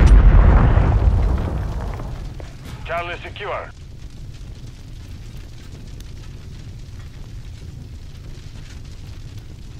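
A fire crackles.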